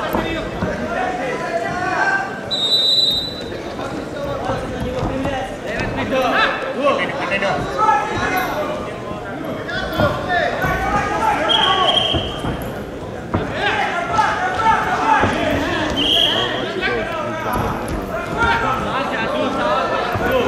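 Wrestlers' feet shuffle and thud on a mat.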